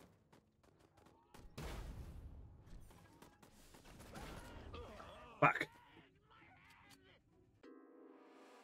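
Gunfire and explosions from a video game crackle and boom.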